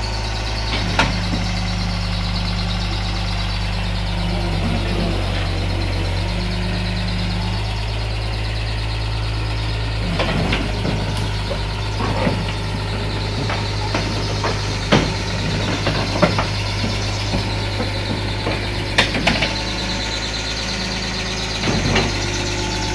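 Metal tracks clank and knock against a truck's trailer bed.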